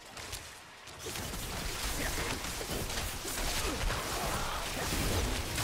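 Weapons clash and spells burst in a busy fight.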